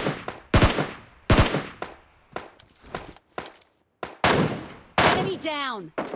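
A rifle fires loud, sharp shots with a short echo.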